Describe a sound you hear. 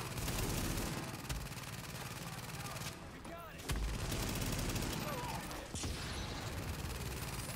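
Heavy footsteps thud quickly as a soldier runs.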